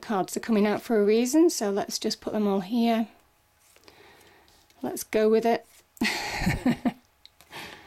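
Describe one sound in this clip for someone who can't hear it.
Playing cards slide and tap softly onto a cloth-covered table.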